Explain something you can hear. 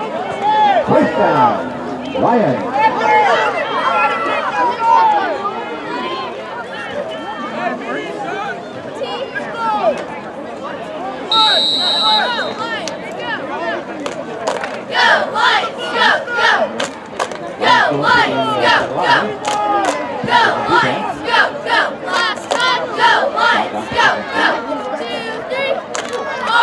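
Young players and spectators shout and chatter outdoors.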